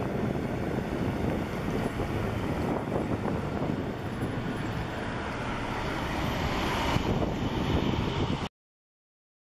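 Tyres roll loudly on asphalt.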